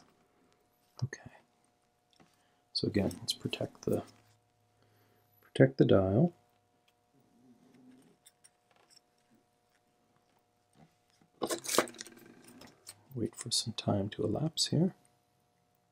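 Small metal parts click and scrape as a watch is handled up close.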